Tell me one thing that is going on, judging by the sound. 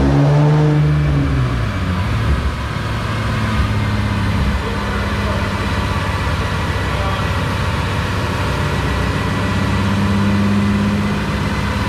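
A car engine revs high, drops off, then idles with a deep, steady exhaust rumble.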